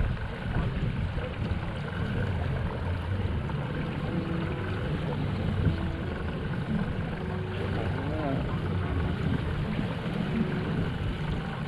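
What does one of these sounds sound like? Wind blusters loudly across the microphone outdoors.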